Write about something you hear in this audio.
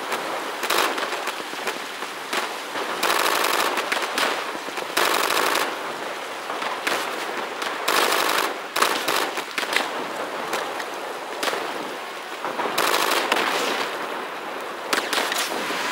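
Gunfire and explosions crackle in the distance.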